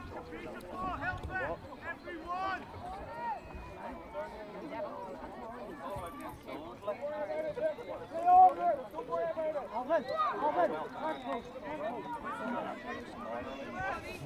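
Young players shout and call out across an open pitch outdoors.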